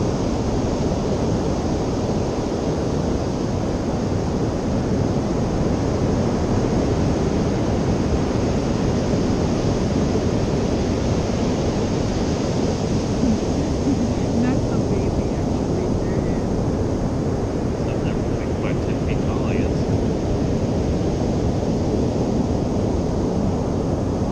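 Waves break and wash onto a beach nearby.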